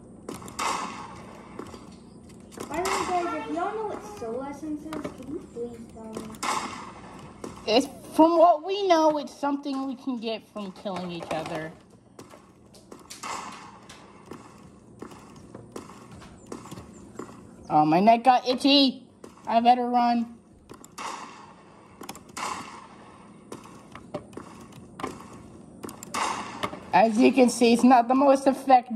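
Keys and a mouse click rapidly.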